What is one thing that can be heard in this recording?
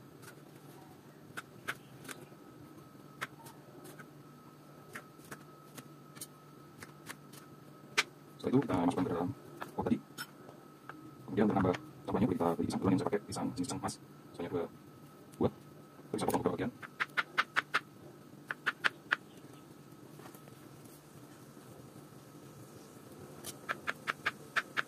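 A knife taps on a cutting board while slicing fruit.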